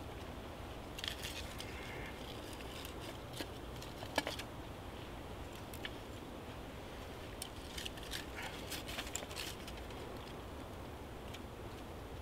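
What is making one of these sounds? Small twigs snap and crackle close by.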